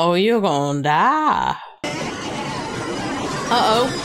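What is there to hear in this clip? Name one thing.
A woman talks cheerfully close to a microphone.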